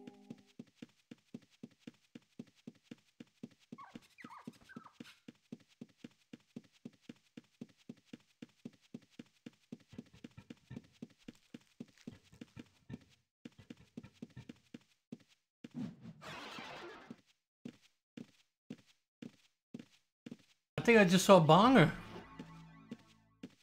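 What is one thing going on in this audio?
Footsteps tap in a quick, steady rhythm.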